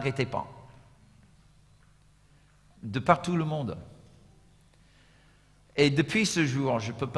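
A middle-aged man speaks calmly through a microphone, with pauses.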